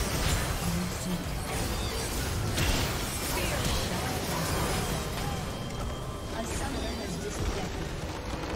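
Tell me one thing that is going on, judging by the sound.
Game spell effects crackle and whoosh rapidly.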